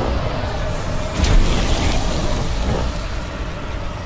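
Flames roar and burst loudly.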